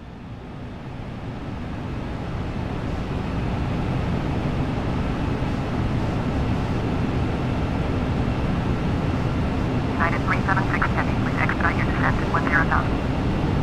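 A jet engine roars steadily, growing louder at first.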